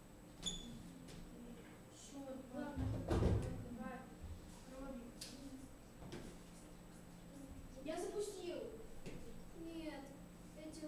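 Young people talk quietly in the room.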